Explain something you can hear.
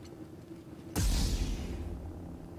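An energy blade ignites with a sudden buzzing whoosh.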